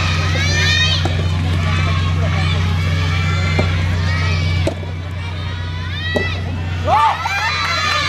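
A tennis ball is struck with a racket in a rally outdoors.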